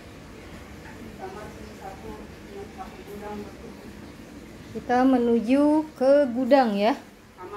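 A woman speaks close by, with animation.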